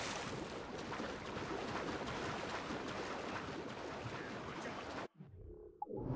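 Water splashes steadily as a swimmer strokes through the sea.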